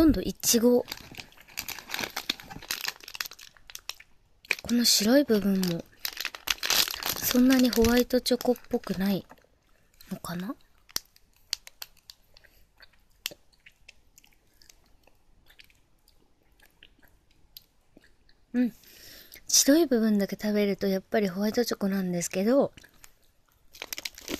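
A plastic candy wrapper crinkles in fingers.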